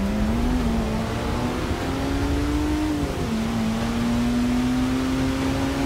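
A truck engine roars, climbing in pitch and dropping briefly as it shifts gear.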